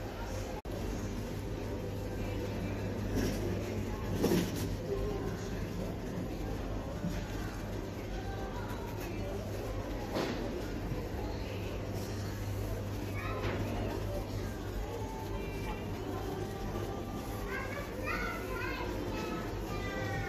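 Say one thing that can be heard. Clothing rustles as a man adjusts his jeans.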